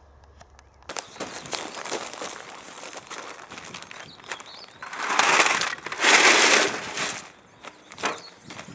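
A wheelbarrow rattles and thuds as it is tipped.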